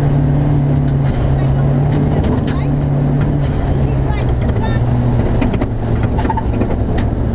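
A woman reads out pace notes through a helmet intercom.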